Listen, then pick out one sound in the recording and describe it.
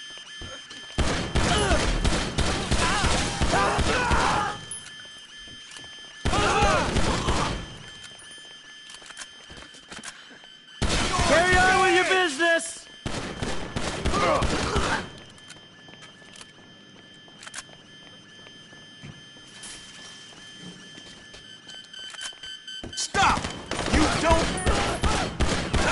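Rapid gunfire rattles loudly in bursts, echoing through hallways.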